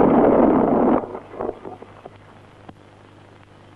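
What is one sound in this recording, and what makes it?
Horses' hooves thud on dry ground.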